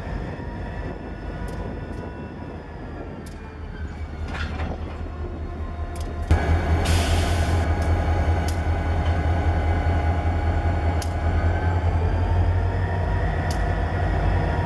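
Diesel locomotive engines rumble and drone close by.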